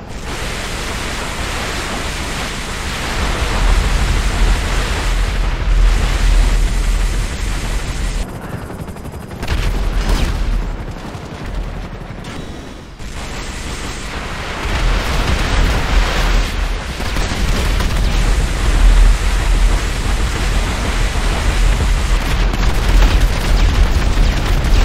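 Rockets launch one after another with a rushing whoosh.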